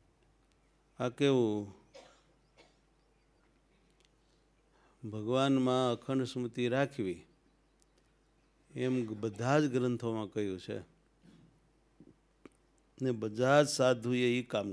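An elderly man chants slowly into a microphone, in short phrases with pauses between them.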